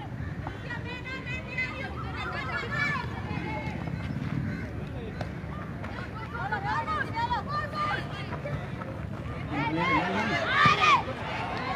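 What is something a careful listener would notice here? A crowd of spectators cheers and shouts excitedly.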